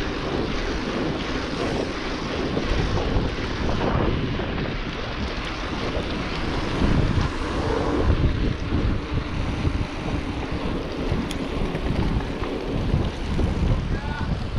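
Bicycle tyres hum and rattle on paving stones.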